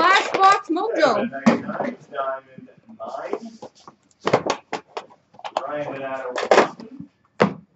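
A hard plastic box clicks and rattles as hands open it.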